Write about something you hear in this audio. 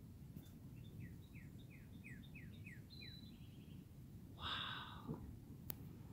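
An eagle gives high, thin chirping calls.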